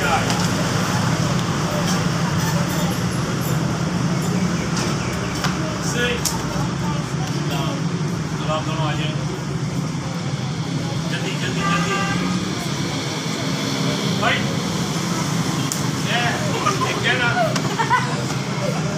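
Children talk and call out among themselves.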